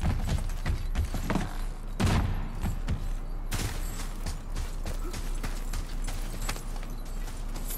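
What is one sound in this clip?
Footsteps crunch on stone and dirt.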